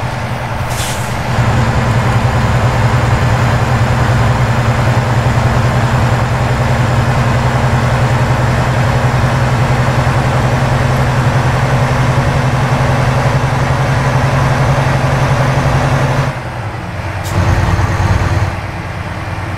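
A truck's diesel engine drones steadily, dropping lower near the end.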